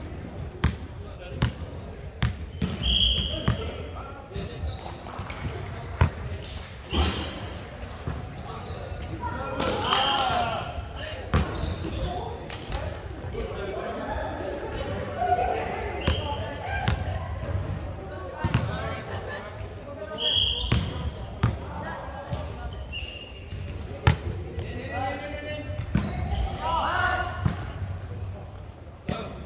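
A volleyball is hit with sharp slaps in a large echoing hall.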